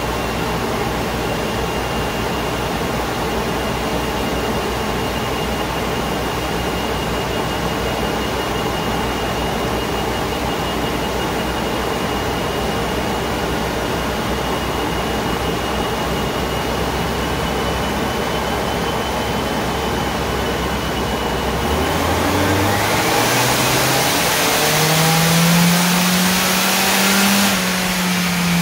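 A blower fan whirs.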